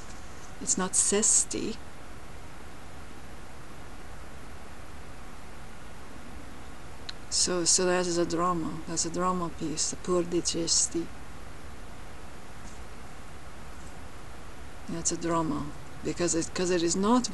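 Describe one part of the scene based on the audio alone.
A young woman talks calmly and casually, close to a microphone, with pauses.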